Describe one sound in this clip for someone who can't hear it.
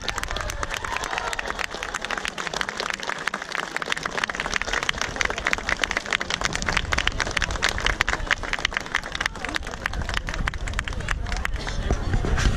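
A crowd claps along in rhythm.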